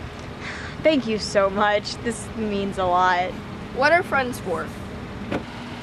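A young woman speaks cheerfully nearby.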